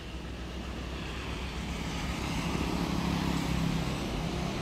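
A motorbike drives past on a road.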